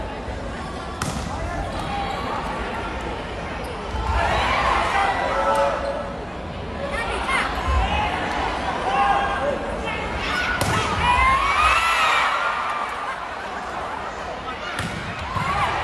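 A ball is struck with sharp smacks.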